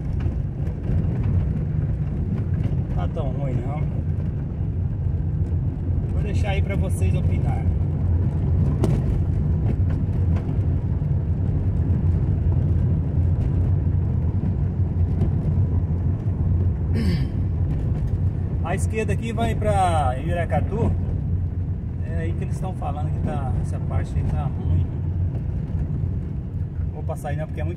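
Tyres roll and rumble over a dirt road.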